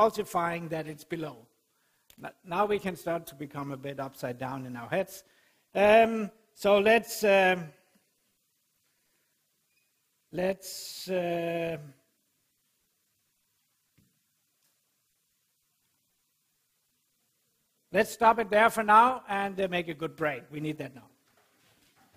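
A man lectures calmly into a microphone, with pauses.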